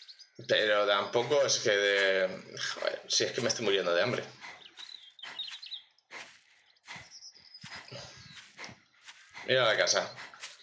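Footsteps rustle through tall grass and bushes.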